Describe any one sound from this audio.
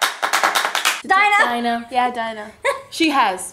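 Several young women talk and laugh over each other nearby.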